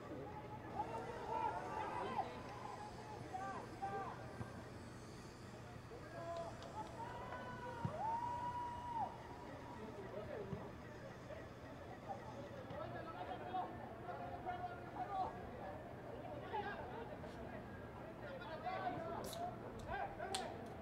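Young men shout to one another at a distance outdoors.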